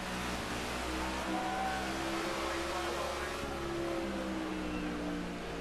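Other race cars roar past nearby.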